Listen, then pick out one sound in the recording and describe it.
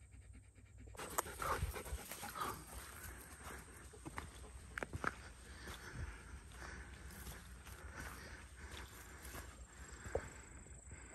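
Footsteps squelch and crunch on a muddy dirt track.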